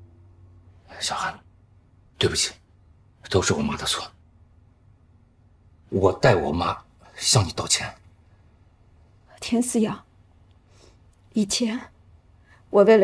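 A man speaks softly and apologetically, close by.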